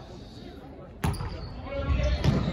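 A volleyball is struck with a sharp slap, echoing in a large hall.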